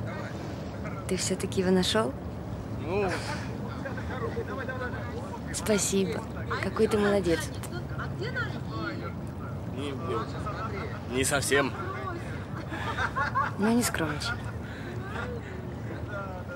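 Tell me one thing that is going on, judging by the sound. A young woman speaks softly and laughs close by.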